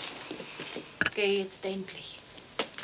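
A boy speaks briefly nearby.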